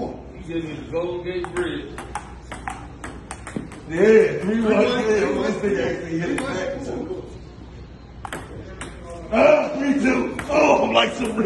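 A ping pong ball clicks back and forth on a table and paddles.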